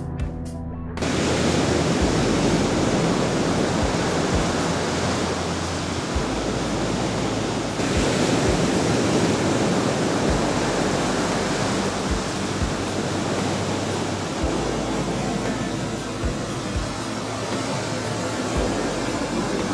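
Ocean waves crash and wash onto a beach.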